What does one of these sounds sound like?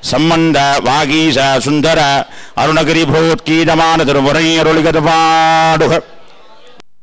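A man chants a prayer nearby.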